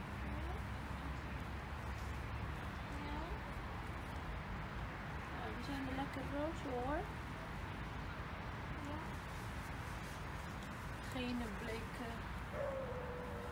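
A young girl talks softly and affectionately close by.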